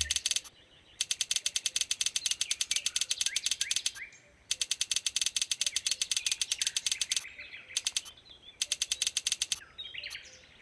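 Points tally up with rapid electronic ticking.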